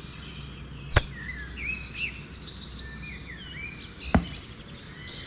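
A small plastic toy is set down with a soft knock.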